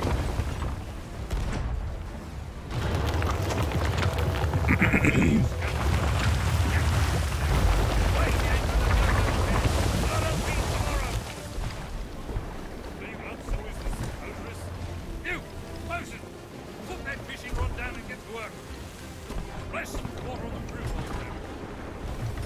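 Rough sea waves roar and churn.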